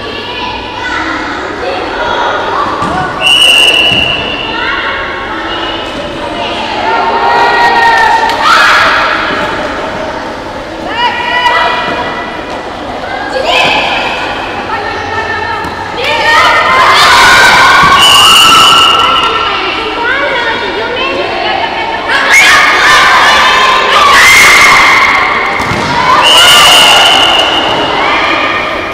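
Young women shout and call out to one another in a large echoing hall.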